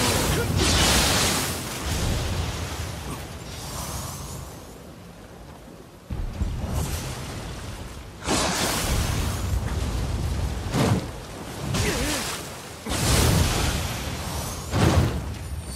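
Swords clash with sharp metallic rings.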